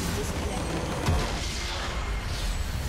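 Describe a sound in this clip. A game structure explodes with a deep boom.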